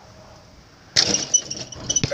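A basketball clanks against a hoop's rim.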